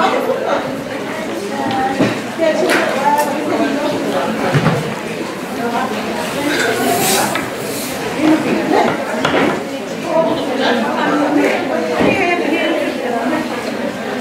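A wooden paddle scrapes and stirs inside a large metal pot.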